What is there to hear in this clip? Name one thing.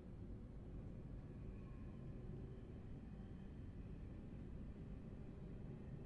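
A passing train roars by close alongside.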